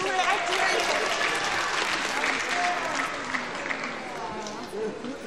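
A crowd cheers in a large hall.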